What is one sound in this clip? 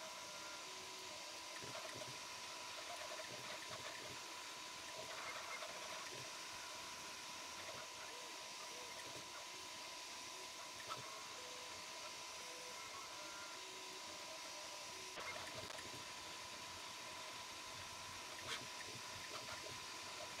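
A 3D printer's stepper motors whine and buzz as the print head moves back and forth.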